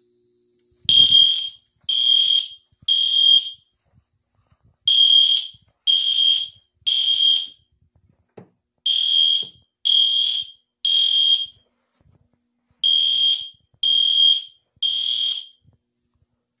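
A fire alarm blares in loud repeating sets of three beeps.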